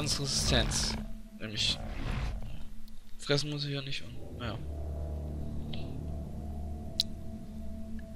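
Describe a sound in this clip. A large beast growls low and rumbling.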